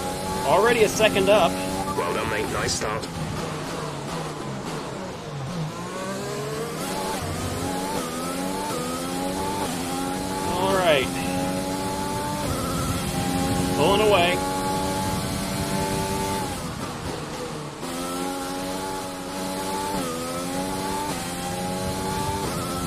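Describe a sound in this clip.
A racing car engine whines and revs up through the gears.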